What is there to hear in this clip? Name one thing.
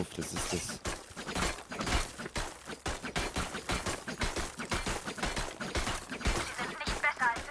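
Thrown knives thud into a stone pillar one after another.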